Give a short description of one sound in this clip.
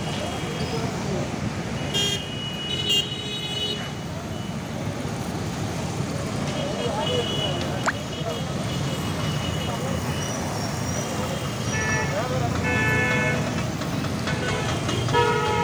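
A hose sprays liquid with a steady hiss.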